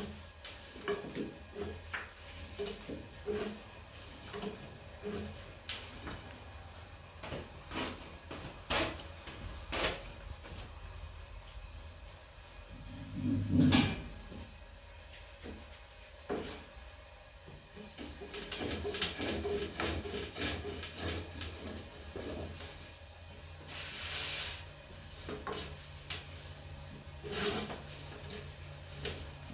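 Dough slaps and pats between hands.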